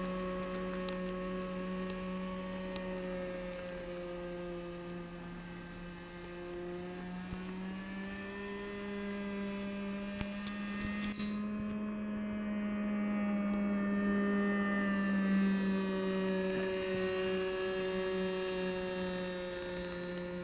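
A model airplane's small engine buzzes overhead, its pitch rising and falling as it circles.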